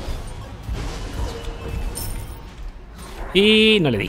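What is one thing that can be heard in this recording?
Magic spells whoosh and burst in a game battle.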